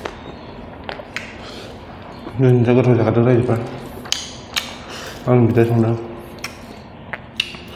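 Fingers squish and scrape through rice on a plate.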